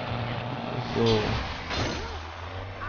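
A pickup truck crashes into a lorry with a loud bang.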